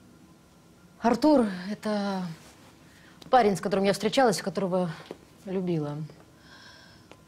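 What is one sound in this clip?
Another young woman speaks softly and emotionally close by.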